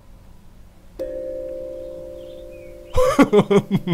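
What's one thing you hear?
A music box plays a short tinkling tune.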